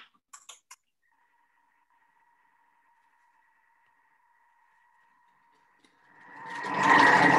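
A food processor hums steadily and then whirs loudly.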